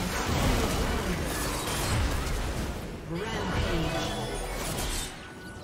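Spell effects crackle and burst in a game fight.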